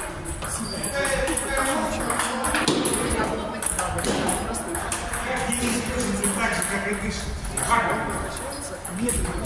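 A man talks casually in an echoing room.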